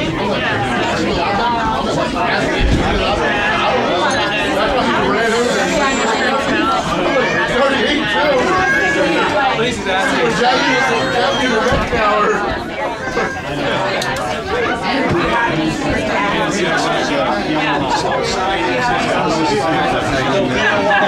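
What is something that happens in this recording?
A middle-aged man speaks steadily up close.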